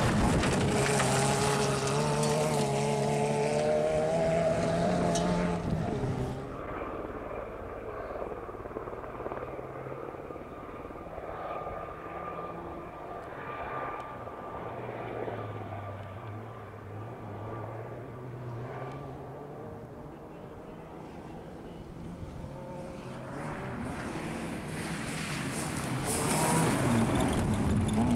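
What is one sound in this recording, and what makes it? A rally car engine revs hard as the car speeds past close by.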